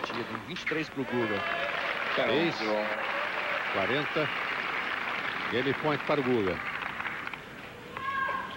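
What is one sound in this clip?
A crowd applauds and cheers in a large stadium.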